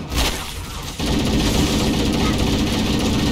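A rifle fires rapid bursts of gunfire.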